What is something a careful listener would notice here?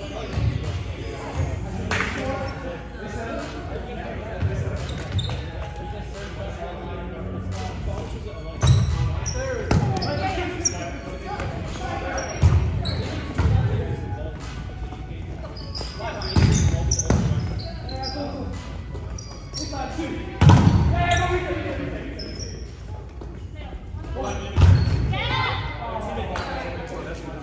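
A volleyball is hit with sharp slaps in a large echoing gym.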